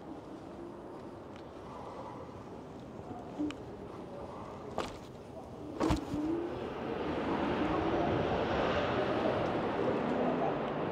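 An electric bike's tyres roll along pavement.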